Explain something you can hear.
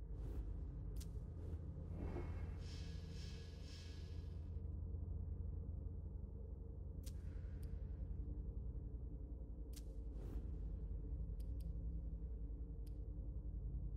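Short soft interface clicks sound.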